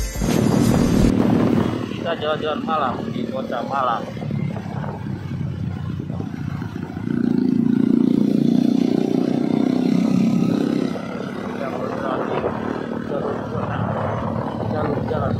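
A motorcycle engine hums steadily.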